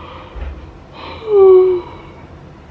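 A young woman gives a muffled sigh behind her hand.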